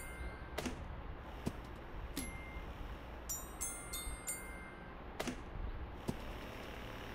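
Short game sound effects pop and thud.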